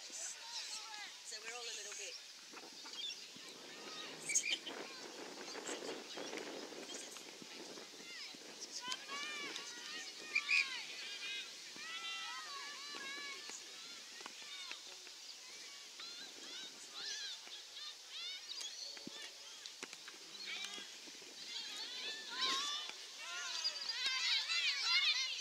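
Young women call out to each other across an open field, heard from a distance.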